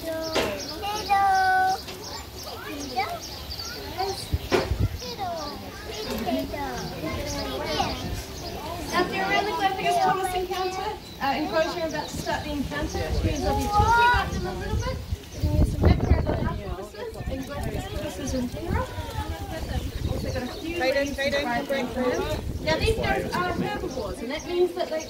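A woman speaks with animation close by, outdoors.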